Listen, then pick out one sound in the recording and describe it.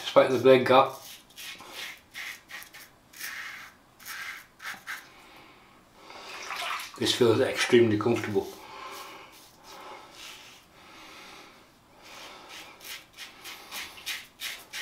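A razor scrapes over stubble with short rasping strokes.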